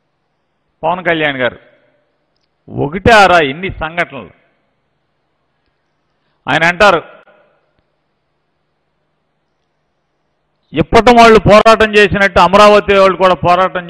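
A middle-aged man speaks firmly into a microphone in short bursts.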